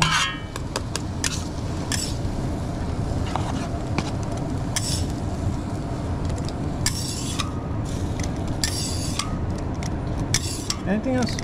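A metal spatula scrapes and clicks against a hot griddle.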